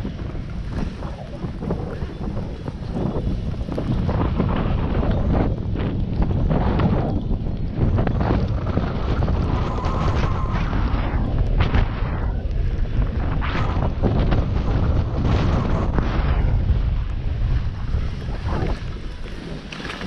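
Wind rushes loudly past a moving skier.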